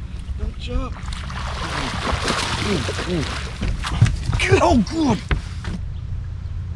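A man talks excitedly nearby.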